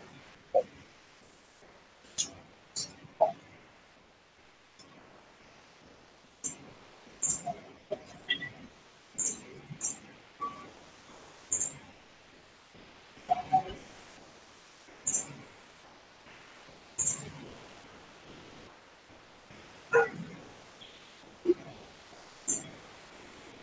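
A computer mouse clicks sharply now and then.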